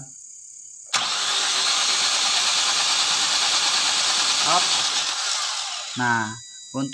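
An engine's starter motor cranks with a loud whirring.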